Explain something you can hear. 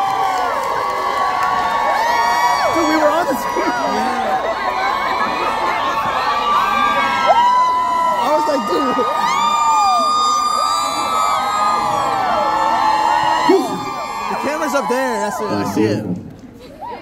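A young man raps into a microphone over loud speakers in a large hall.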